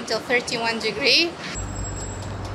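A woman speaks close to a microphone.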